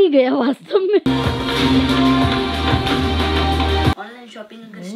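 Music plays from a television.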